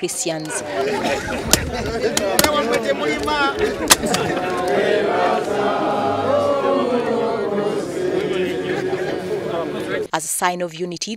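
A crowd of men talks and murmurs nearby.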